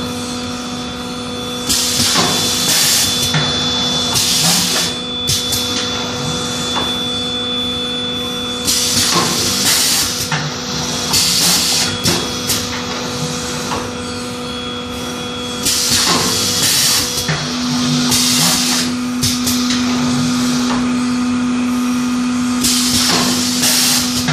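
A machine clatters and thumps as it presses.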